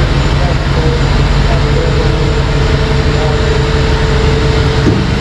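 A truck engine idles with a loud, steady rumble in an echoing tunnel.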